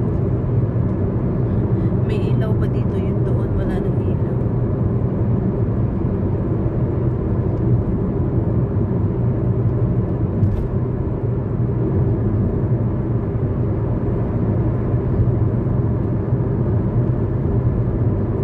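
Tyres rumble steadily on a rough road.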